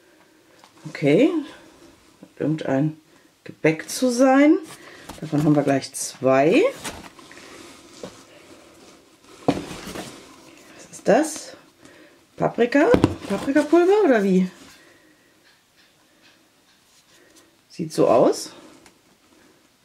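Plastic containers rustle and knock as a hand lifts them from a cardboard box.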